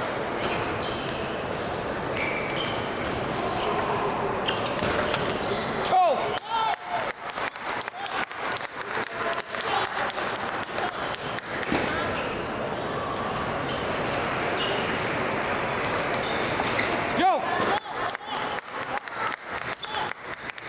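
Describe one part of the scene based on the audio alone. A ping-pong ball clicks back and forth on paddles and a table.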